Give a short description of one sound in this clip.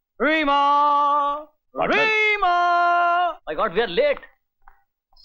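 Men laugh loudly and heartily nearby.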